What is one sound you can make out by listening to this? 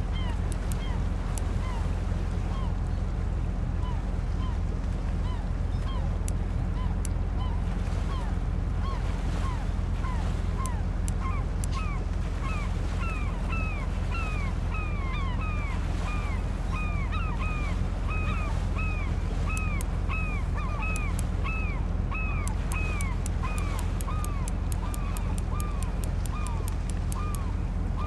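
A fishing reel winds in line.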